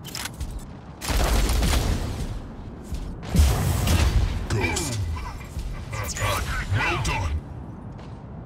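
Heavy guns fire in loud bursts.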